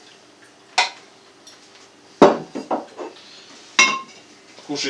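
Dishes clink on a wooden table.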